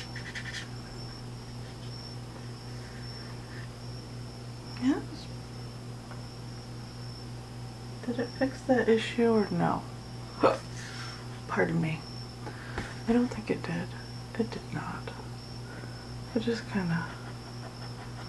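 A paintbrush softly strokes paper.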